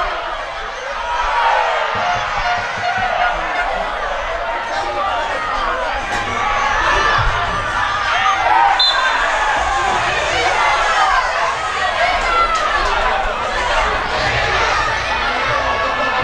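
Young players shout to one another across an open field.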